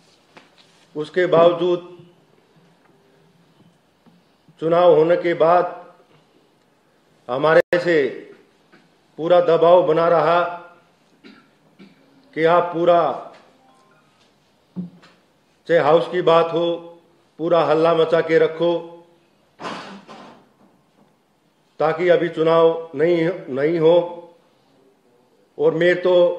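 A man speaks calmly into a microphone, pausing often between phrases.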